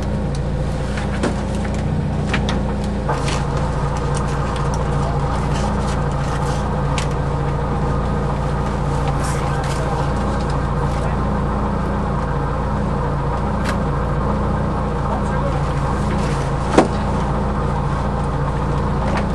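A car engine idles steadily, heard from inside the car.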